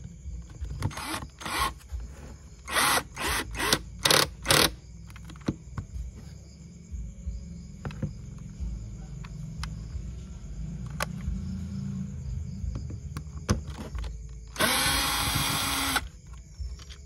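A cordless drill whirs in short bursts, driving out screws.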